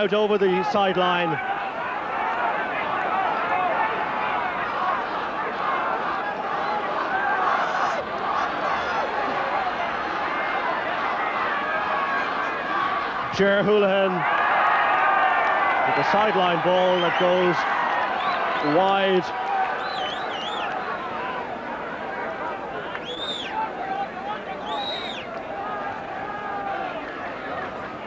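A large outdoor crowd cheers and roars.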